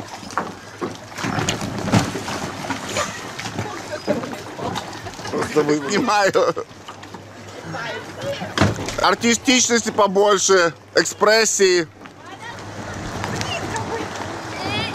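Water laps and splashes around swimmers.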